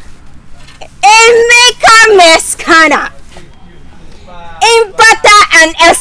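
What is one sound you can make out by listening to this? A young woman talks cheerfully on a phone, close by.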